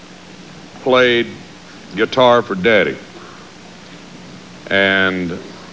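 A man speaks in short, drawn-out phrases with pauses between them.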